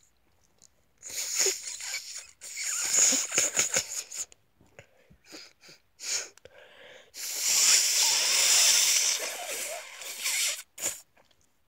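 A young man groans and moans close by.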